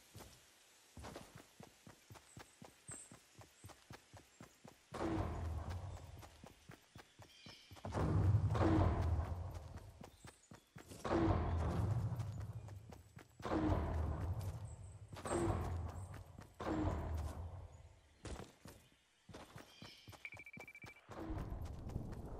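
Quick footsteps run steadily over ground.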